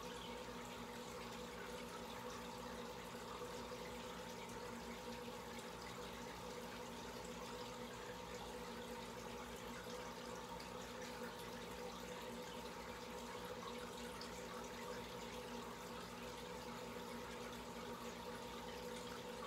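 An aquarium air pump hums.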